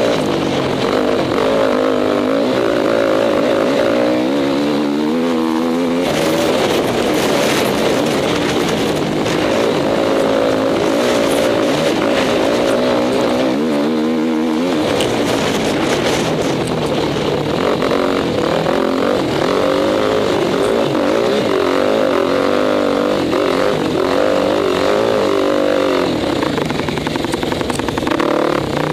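A dirt bike engine roars loudly up close, revving up and down.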